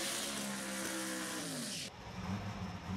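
A race car engine roars loudly, then drops in pitch.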